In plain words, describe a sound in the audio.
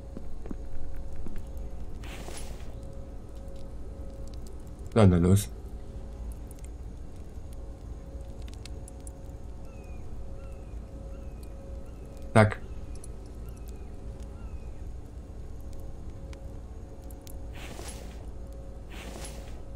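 A fire burns softly in a furnace.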